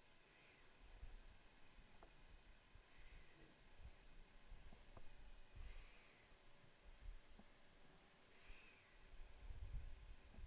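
Playing cards are shuffled and tapped on a table.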